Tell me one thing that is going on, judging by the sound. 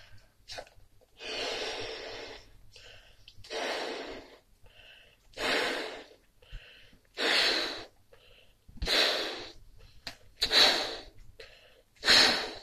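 A young man blows hard into a balloon in repeated long breaths.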